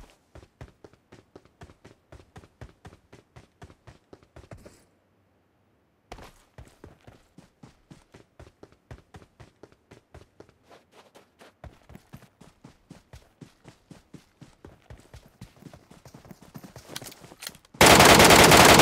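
Footsteps patter quickly as someone runs.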